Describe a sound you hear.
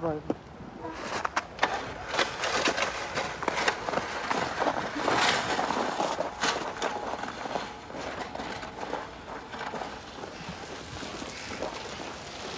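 A sled scrapes and crunches over snow as it is dragged.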